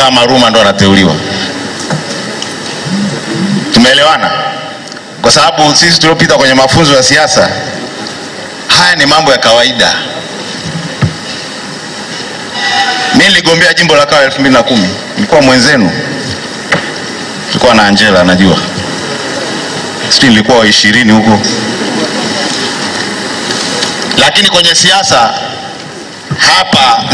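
A man speaks with animation into a microphone through loudspeakers.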